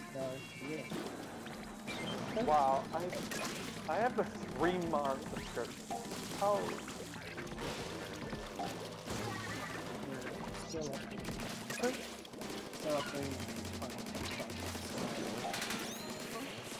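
Ink splatters and sprays in quick bursts.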